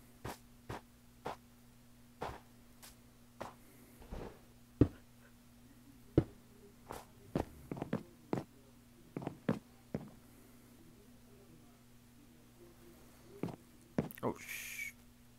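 Wooden blocks are placed and broken with short knocking thuds.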